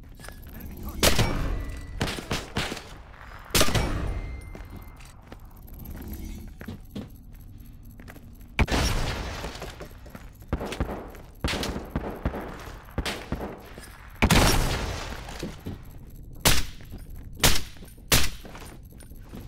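Gunshots crack in short bursts with a loud echo.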